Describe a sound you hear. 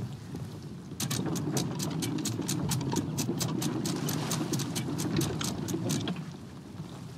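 An anchor winch clicks rapidly as it turns.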